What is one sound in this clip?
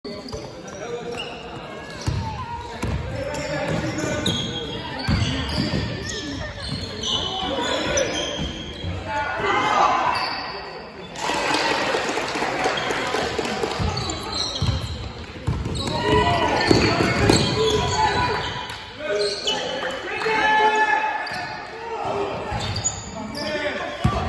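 A basketball bounces on a wooden floor in an echoing sports hall.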